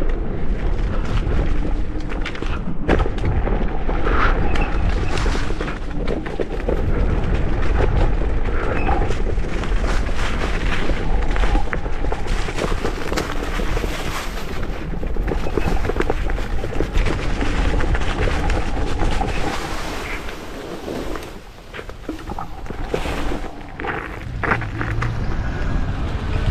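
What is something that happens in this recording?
Wind buffets a microphone with a heavy rumble.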